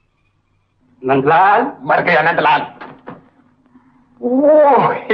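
A man speaks loudly and with animation close by.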